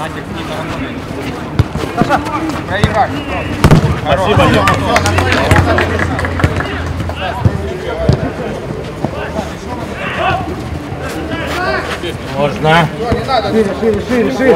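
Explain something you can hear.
Men shout and call out to each other across an outdoor pitch.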